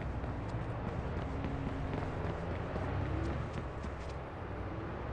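Footsteps run quickly across hard pavement.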